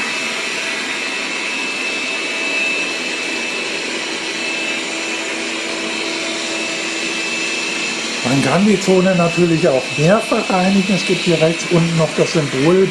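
A robot vacuum cleaner hums and whirs steadily as it moves across the floor.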